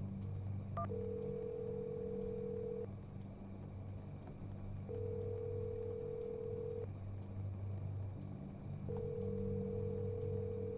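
A telephone line gives long, evenly spaced ringing tones.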